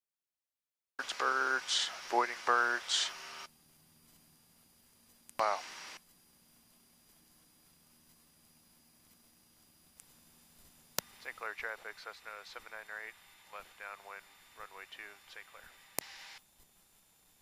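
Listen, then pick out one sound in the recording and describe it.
A man speaks calmly over an aircraft radio headset.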